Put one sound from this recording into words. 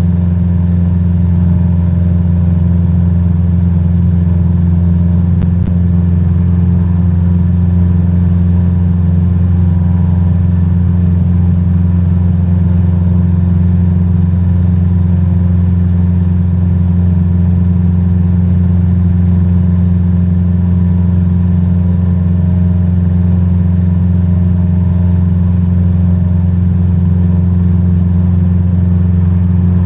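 A small propeller plane's engine drones steadily and loudly.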